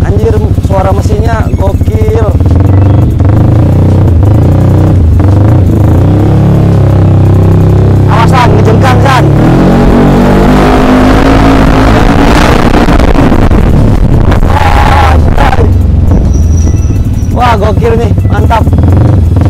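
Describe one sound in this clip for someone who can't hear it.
A motorcycle engine rumbles loudly up close and revs up and down.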